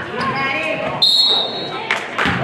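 A referee's whistle blows once briefly.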